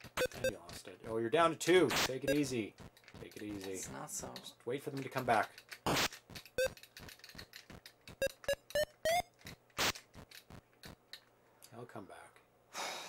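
Two men talk with animation, close to a microphone.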